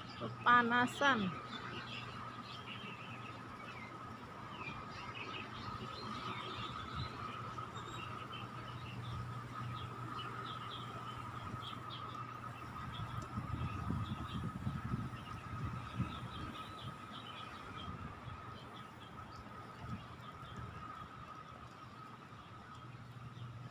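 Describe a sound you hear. Wind blows softly through the trees outdoors.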